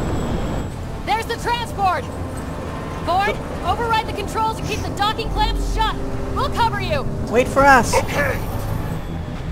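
A young woman speaks urgently.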